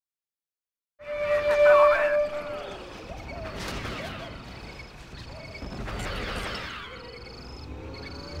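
Laser blasters fire in short bursts, with sharp zapping shots.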